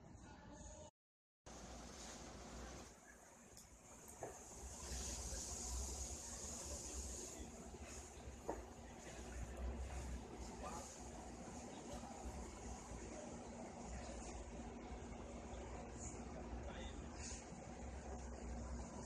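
Wind gusts outdoors and rustles palm leaves.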